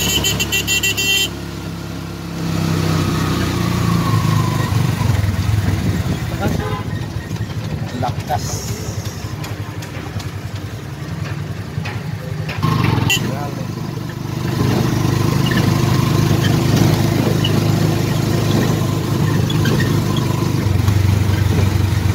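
Rain patters on the rickshaw's roof and windows.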